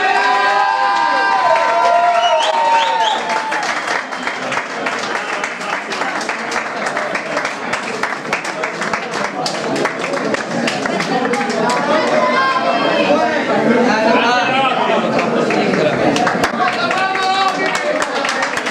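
A man sings loudly into a microphone over a band.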